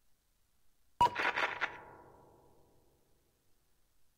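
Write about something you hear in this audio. A short notification chime rings out and fades.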